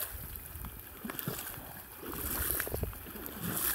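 Dry grass rustles against legs.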